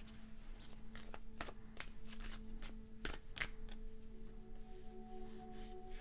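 Playing cards are shuffled and flicked by hand, close by.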